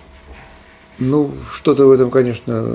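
A man speaks up close to the microphone.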